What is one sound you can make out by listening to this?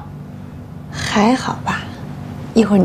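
A young woman answers briefly and cheerfully close by.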